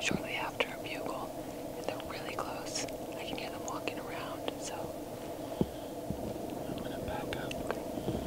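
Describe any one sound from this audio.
A young woman speaks quietly and excitedly, close by.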